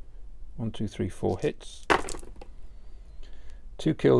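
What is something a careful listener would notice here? Plastic dice click together as a handful is picked up from a tray.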